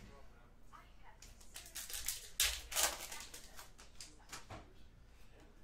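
A foil card wrapper crinkles and rustles.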